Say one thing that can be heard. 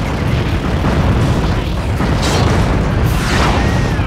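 An explosion bursts with a loud crash.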